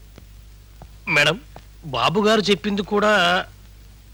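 A man speaks loudly and emphatically, close by.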